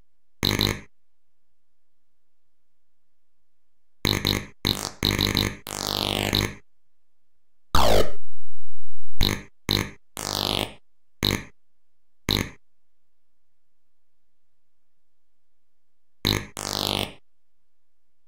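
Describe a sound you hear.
Retro video game beeps and chirps sound in short bursts.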